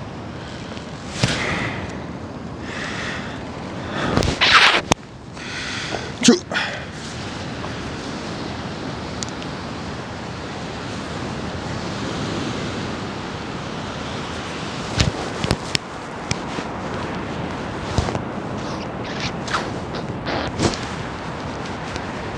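Waves wash steadily onto a shore.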